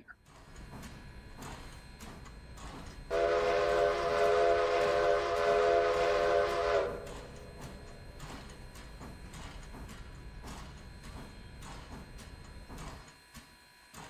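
A steam locomotive rumbles low as it rolls along.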